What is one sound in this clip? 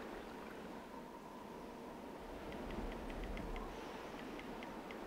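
Water from a hose trickles into a basin.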